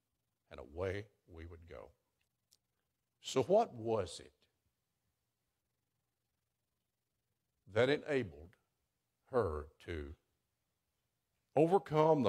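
An elderly man speaks slowly and calmly into a microphone, with pauses between phrases.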